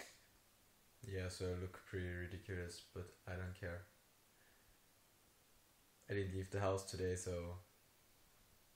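A young man speaks calmly and close up, with pauses.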